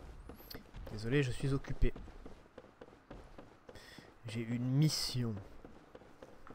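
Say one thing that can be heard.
A young man speaks briefly into a close microphone.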